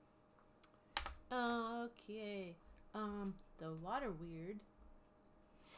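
A woman speaks animatedly over an online call.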